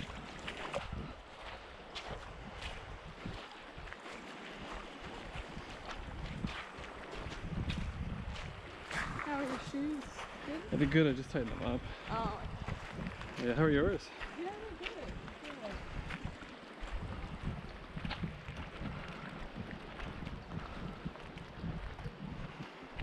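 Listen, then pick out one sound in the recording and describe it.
A river flows and gurgles nearby.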